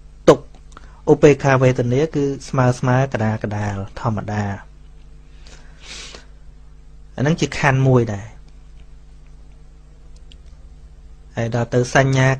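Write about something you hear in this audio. A man speaks calmly into a microphone, in bursts with pauses.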